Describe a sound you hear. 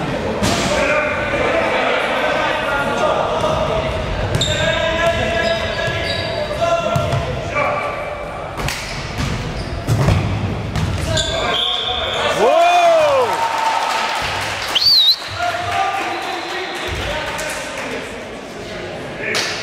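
Young players shout and call out in a large echoing hall.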